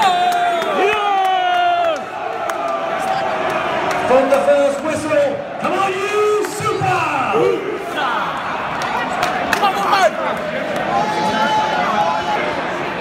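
A crowd murmurs and shouts steadily in the background.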